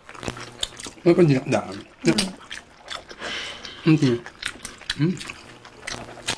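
A man makes short hums while eating, close to a microphone.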